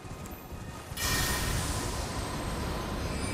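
A magical blast bursts with a bright, hissing whoosh.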